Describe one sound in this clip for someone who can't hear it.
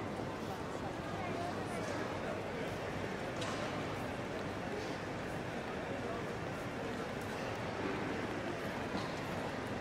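Many people talk in a murmur that echoes through a large hall.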